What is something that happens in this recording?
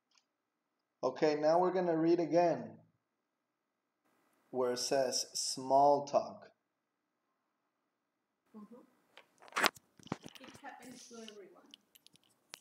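A young man speaks calmly and clearly into a close microphone, in short bursts.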